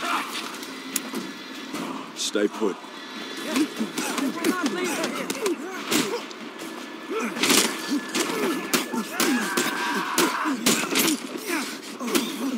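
Fists thud in a brawl, with sharp punches landing again and again.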